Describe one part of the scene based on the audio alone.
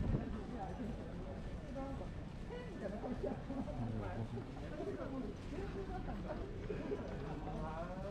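Footsteps tap on a paved street.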